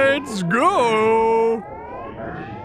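A spaceship engine whines with a wavering pitch, then cuts off.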